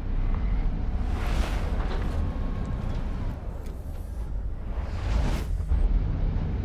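A rushing whoosh swells up and fades away.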